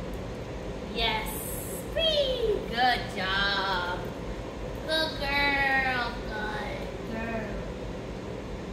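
A young woman talks to a dog in a high, cheerful voice nearby.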